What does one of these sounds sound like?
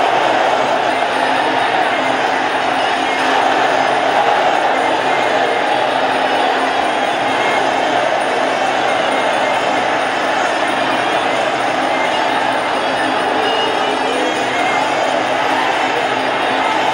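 A crowd cheers and shouts throughout in a large echoing hall.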